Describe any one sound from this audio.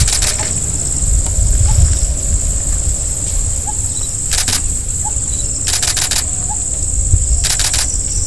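Elephants' heavy feet tread softly on a dirt track.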